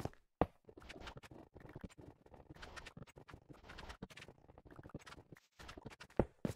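A pickaxe scrapes and chips rapidly at stone.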